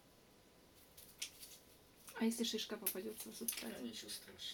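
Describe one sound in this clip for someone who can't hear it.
Dry moss rustles and tears between hands.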